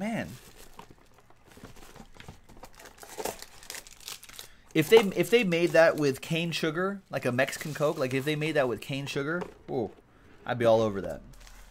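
Cardboard boxes rustle and scrape as hands handle them.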